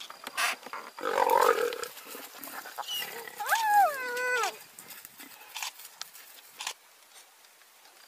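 A leopard snarls and growls.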